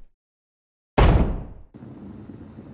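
A heavy door thuds shut.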